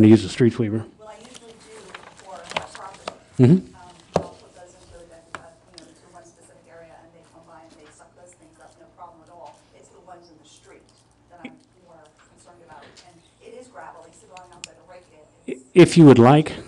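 A woman speaks quietly through a microphone.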